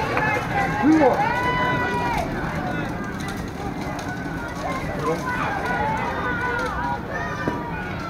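Young women call out and cheer in drawn-out voices across an open field.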